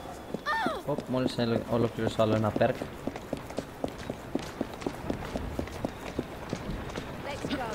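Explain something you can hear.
Footsteps run quickly on wet cobblestones.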